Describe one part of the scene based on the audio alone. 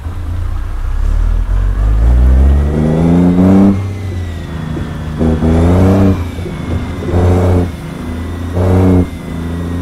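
A heavy truck engine revs up loudly, rising in pitch, several times.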